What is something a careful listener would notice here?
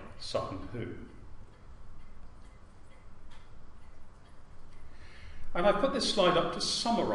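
An elderly man lectures calmly through a microphone.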